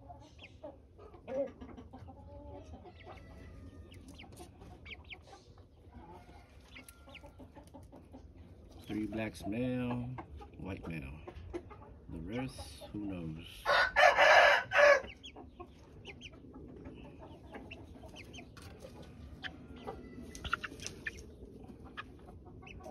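Young chickens peep and chirp close by.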